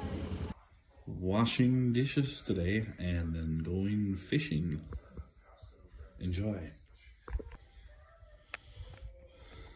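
A middle-aged man talks with animation close to a phone microphone.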